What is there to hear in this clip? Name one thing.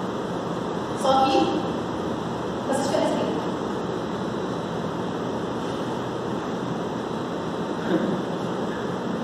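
A young woman speaks in short bursts, with pauses between.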